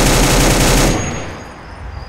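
A gun fires a loud burst of shots.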